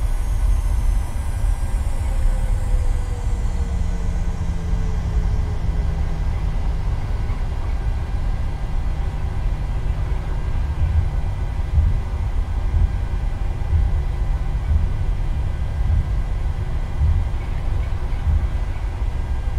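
A jet airliner's engines hum steadily while it taxis.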